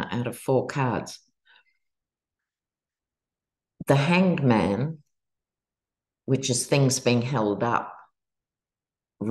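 A middle-aged woman speaks calmly over an online call, in short phrases with pauses.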